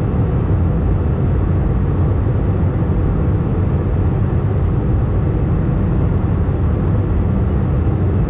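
Jet engines roar in a steady, low, muffled drone inside a plane cabin.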